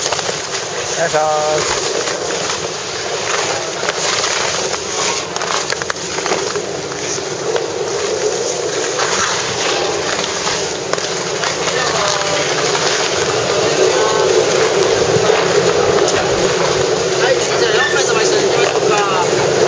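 A snowboard scrapes and slides over hard snow.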